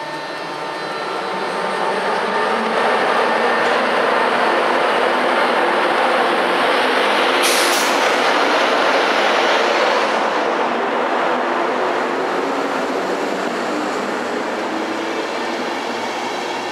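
Train wheels rumble and clatter along the rails, growing louder as the carriages pass close by.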